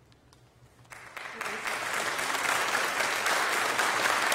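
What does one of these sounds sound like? A small group of people applauds.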